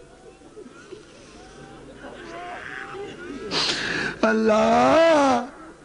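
Men in a crowd sob and weep aloud.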